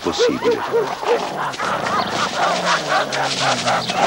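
Dogs growl low and harshly.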